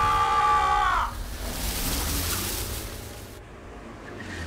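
A car skids over loose gravel.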